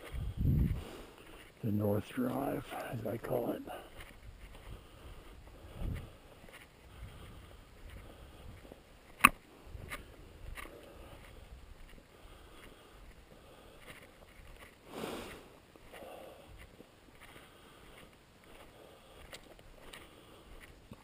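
Footsteps brush through short grass outdoors.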